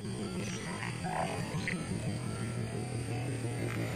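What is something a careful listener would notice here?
A fishing lure splashes into still water.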